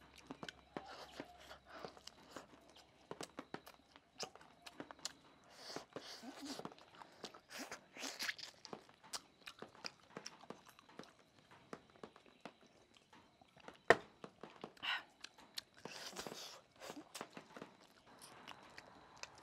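A woman bites and chews crunchy food noisily, close by.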